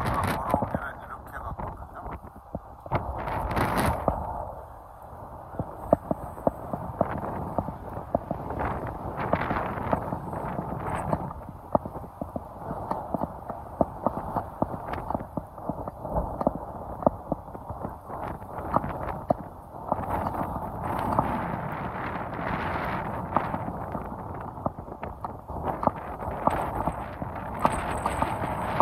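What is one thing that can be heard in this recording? Footsteps tread steadily on pavement and grass.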